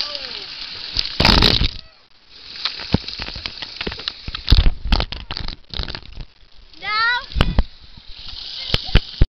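Water splashes and pours.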